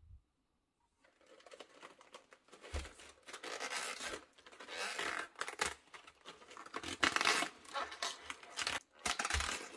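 Crisp cabbage leaves crinkle and crackle as hands peel them.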